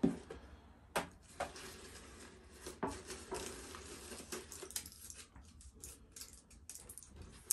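Paper rustles as a man unwraps something.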